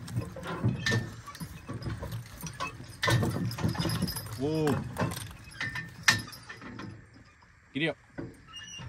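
Harness chains and leather jingle and creak as a pair of horses pull.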